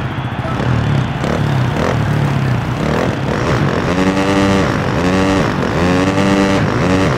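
A dirt bike engine revs and whines loudly.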